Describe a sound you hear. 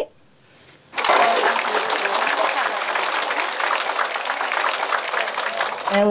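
A large crowd claps and applauds loudly.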